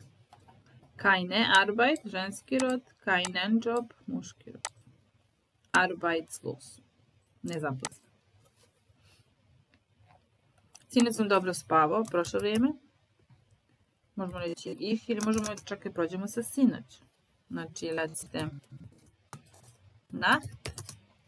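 A woman speaks calmly and clearly through a microphone, explaining in short bursts with pauses.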